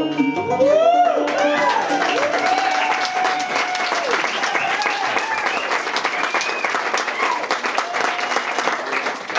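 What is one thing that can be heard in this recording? Acoustic guitars strum along.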